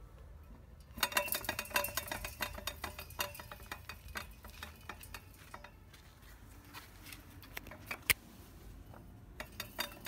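A hand taps and rattles a metal can.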